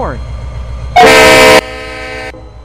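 A train horn blares loudly for a moment.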